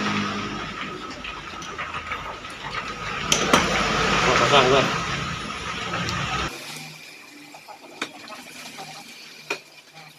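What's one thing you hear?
Metal parts click and scrape as they are fitted together by hand.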